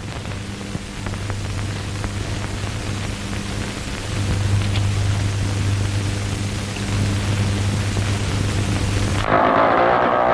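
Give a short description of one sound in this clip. A motorcycle engine idles with a low, steady hum.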